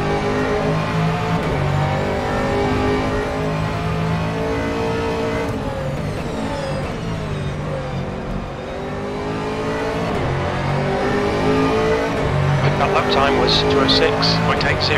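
A racing car engine roars loudly, its pitch climbing and dropping as it shifts gears.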